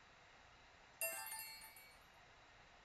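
A short bright chime rings out.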